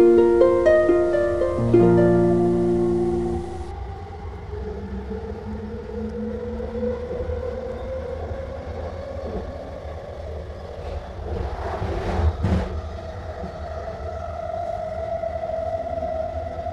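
A train rumbles steadily along its rails.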